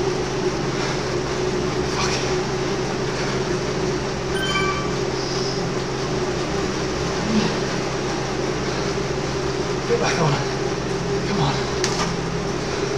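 A man speaks briefly close to a microphone.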